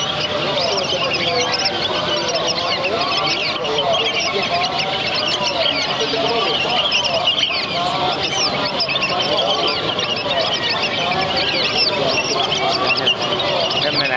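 Doves coo softly and repeatedly.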